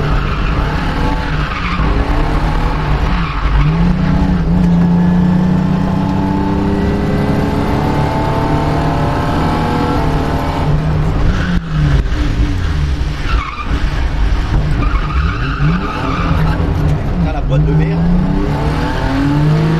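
Tyres screech and squeal on tarmac as the car slides.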